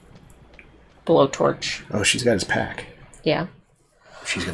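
A man talks calmly close to a microphone.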